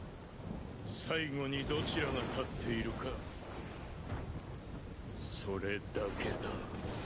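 A man speaks in a low, intense voice.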